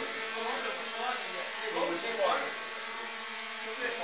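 A small drone buzzes and whirs as it hovers.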